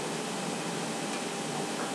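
A makeup brush brushes softly against skin.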